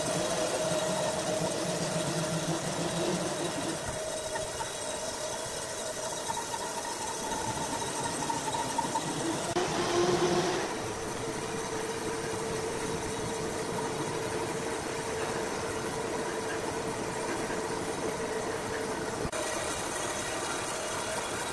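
A band saw hums steadily as it cuts through a large log.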